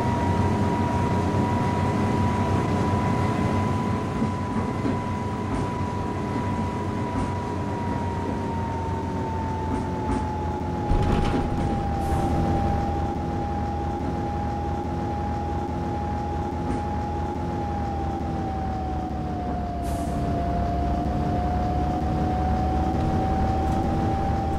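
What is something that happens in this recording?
A bus engine hums steadily with a high whine that slowly drops in pitch.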